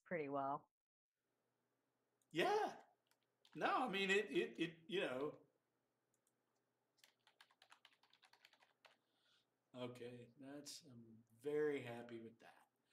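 A man speaks calmly into a microphone, in short bursts.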